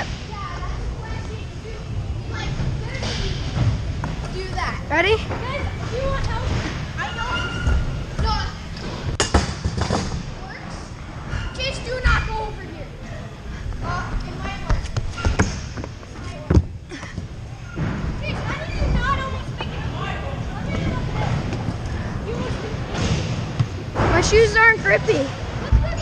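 Scooter wheels roll and rumble over a wooden ramp in a large echoing hall.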